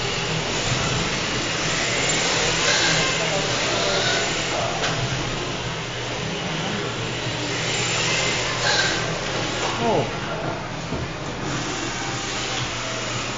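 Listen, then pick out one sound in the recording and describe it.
Small electric motors whine as toy cars race around a track.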